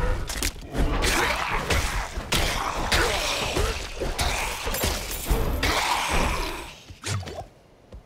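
Weapons strike and slash in a fierce fight.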